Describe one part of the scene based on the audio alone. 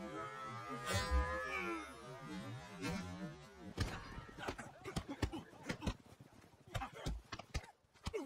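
Fists thud in a fistfight.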